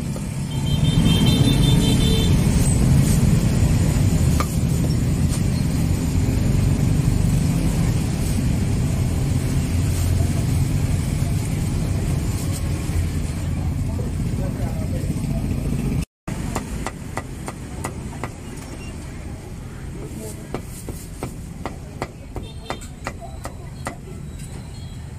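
A cleaver chops on a wooden board with sharp knocks.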